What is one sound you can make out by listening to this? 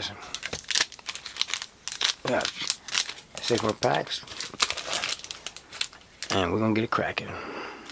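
Trading cards flick and tap against each other.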